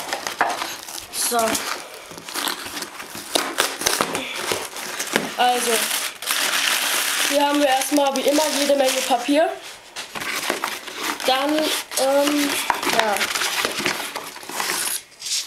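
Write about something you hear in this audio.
Cardboard and packing paper rustle and crinkle up close.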